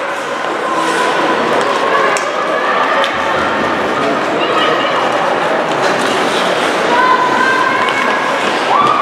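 Young players shout to each other across the echoing rink.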